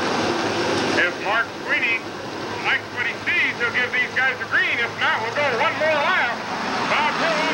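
A man nearby shouts excitedly.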